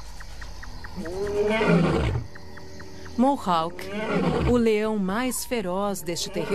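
A lion roars loudly nearby.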